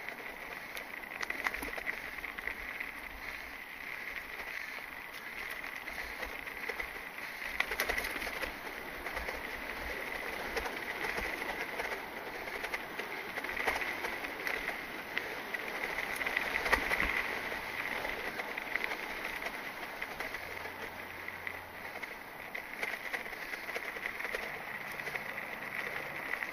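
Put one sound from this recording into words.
Mountain bike tyres roll over dry dirt and leaves.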